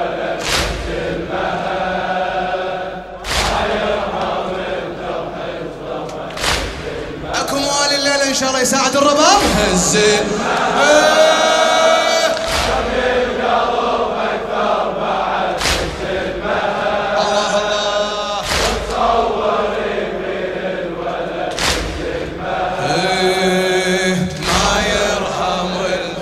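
A crowd beats their chests in unison with heavy, slow thuds.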